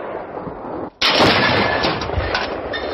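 A field gun fires with a loud boom.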